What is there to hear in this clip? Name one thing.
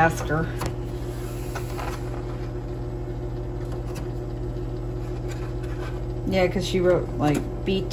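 Eggs tap and click softly against a plastic tray.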